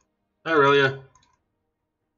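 A man speaks briefly and loudly into a headset microphone.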